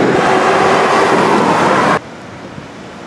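A car drives past close by on the road.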